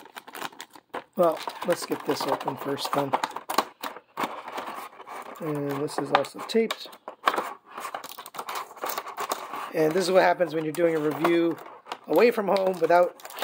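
A hard plastic case clicks and rattles in hands.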